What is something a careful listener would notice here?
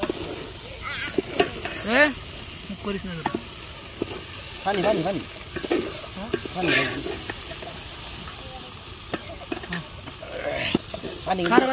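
A metal ladle scrapes and stirs rice in a metal pot.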